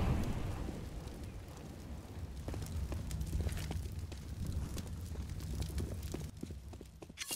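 A fire roars and crackles steadily.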